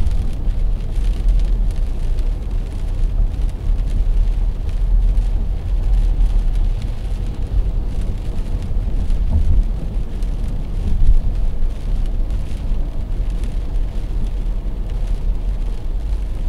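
Windshield wipers swish across the glass.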